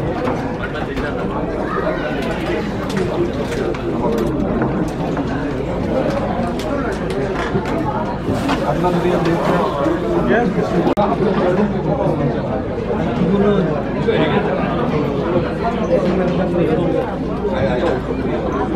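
Dishes and cutlery clink on tables.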